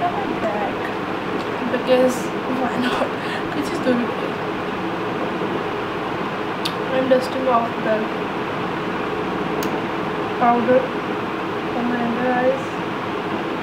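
A young woman speaks in a cheerful, chatty voice, close to the microphone.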